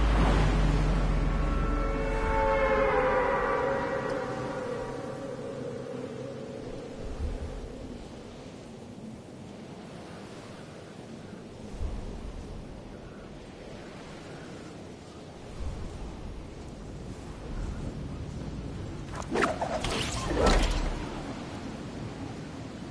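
Wind rushes past during a glide through the air.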